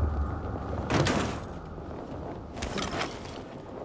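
A metal bin lid clanks open.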